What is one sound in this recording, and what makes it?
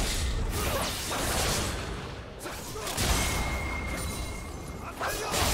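Video game spell effects whoosh and crackle during a busy fight.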